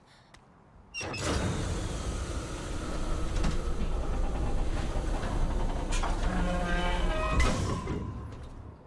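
Heavy machinery rumbles and grinds loudly.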